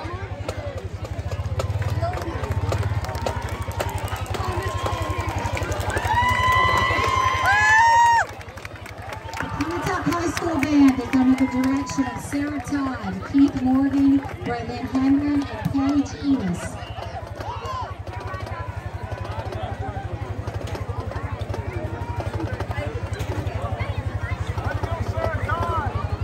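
A crowd murmurs and cheers in the stands.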